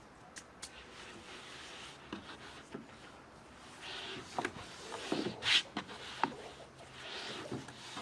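A rolling pin rolls and thumps on a wooden board.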